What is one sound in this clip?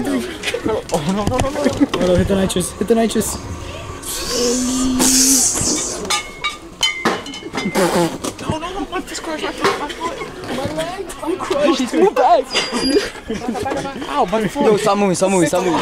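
Several young men talk and laugh excitedly close by.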